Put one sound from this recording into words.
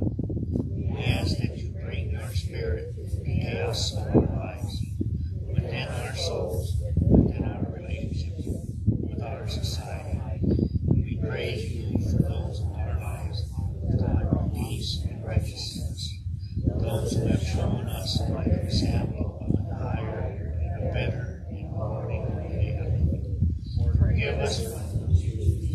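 A man sings into a microphone outdoors.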